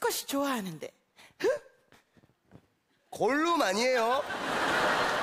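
A woman speaks loudly and with animation into a microphone.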